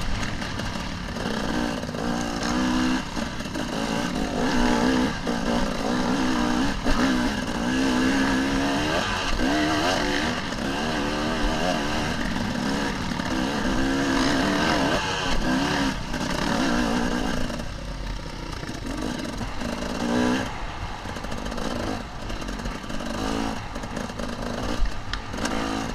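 Tyres crunch and rattle over dirt and stones.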